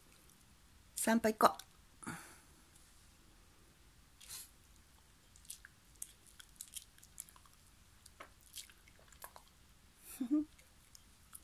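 A small dog gives a few short, sharp yips close by.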